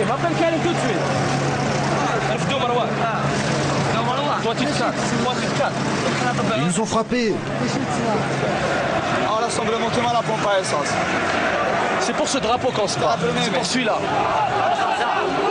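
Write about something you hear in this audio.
Men speak with agitation close by.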